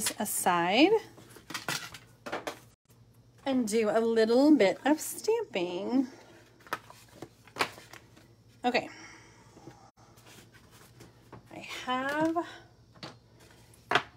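Paper and card rustle and tap as they are handled.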